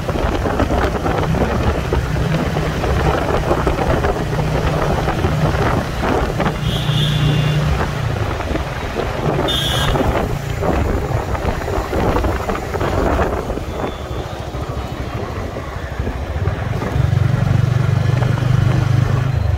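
Wind rushes loudly past a moving motorcycle.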